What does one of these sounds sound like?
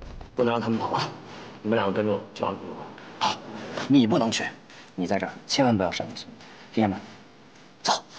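A young man speaks urgently in a low voice, close by.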